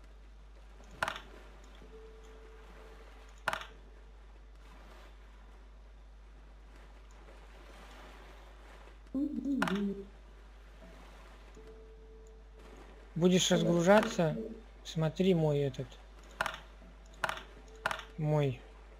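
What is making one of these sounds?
Short clicks sound as items are moved between slots.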